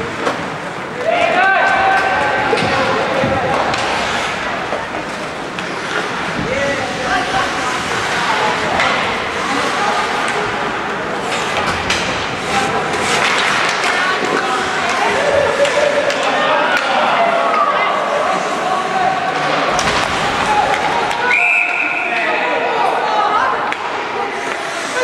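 Young players shout to each other across the rink.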